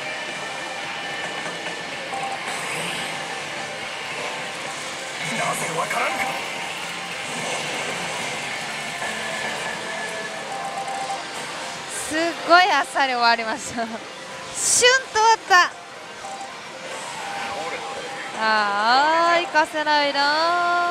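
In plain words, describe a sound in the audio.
A slot machine plays electronic music and sound effects.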